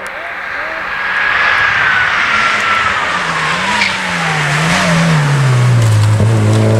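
A second rally car approaches, its engine revving loudly and shifting through gears.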